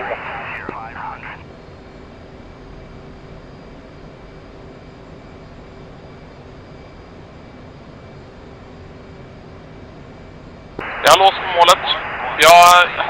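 A jet engine hums steadily in the background.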